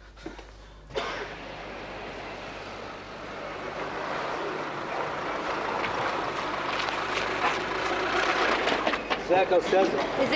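A car engine hums as the car rolls slowly over dirt.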